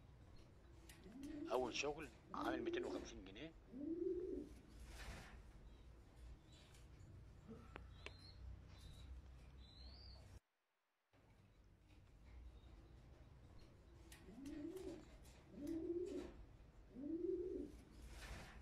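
A pigeon coos in low, rolling bursts.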